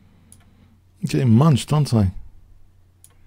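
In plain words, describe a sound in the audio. An older man speaks with animation, close to a microphone.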